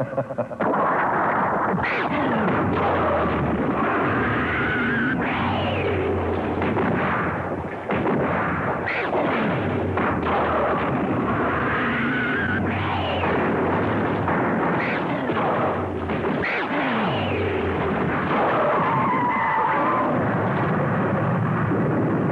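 Giant monsters roar and screech loudly, with shrill rising and falling cries.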